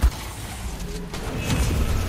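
A rifle fires a burst of shots.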